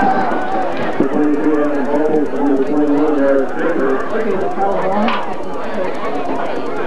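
Young players shout and talk together in a huddle.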